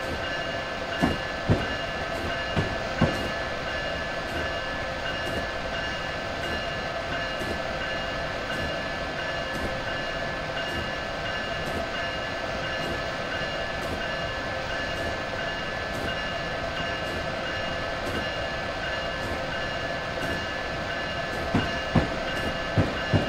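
Train wheels clunk over rail joints.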